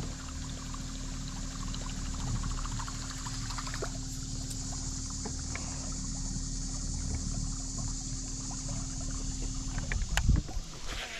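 A trolling motor hums steadily, then stops.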